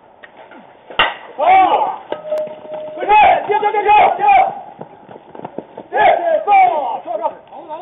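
Men shout across an outdoor field.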